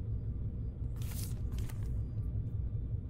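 A small device is set down on a table with a short rustle.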